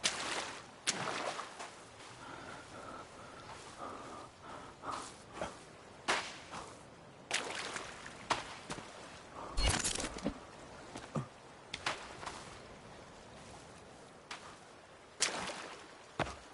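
Waves wash and splash against a sandy shore.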